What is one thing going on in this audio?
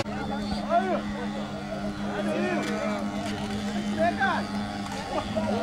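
An ox cart's wooden axle sings with a steady, droning squeal.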